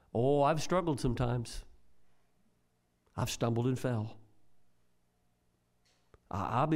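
An elderly man preaches into a microphone in short, emphatic phrases, with pauses between them.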